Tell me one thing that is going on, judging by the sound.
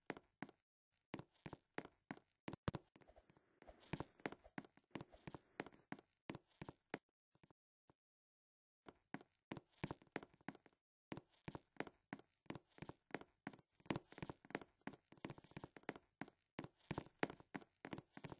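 Quick footsteps patter on a wooden floor.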